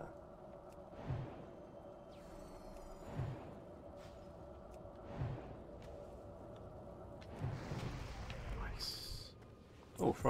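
Magic spells crackle and strike with sharp bursts.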